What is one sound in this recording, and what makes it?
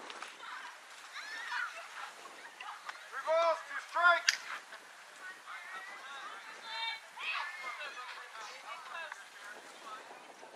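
Young girls shout and cheer excitedly nearby.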